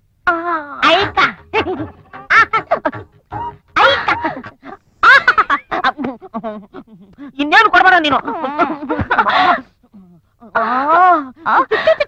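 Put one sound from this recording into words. A young woman sings sweetly, close up.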